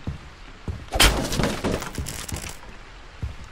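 A loud crash of something being smashed bursts out.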